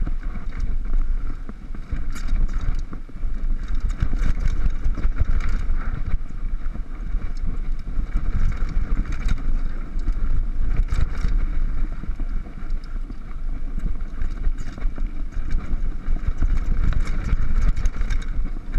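Wind buffets a microphone steadily.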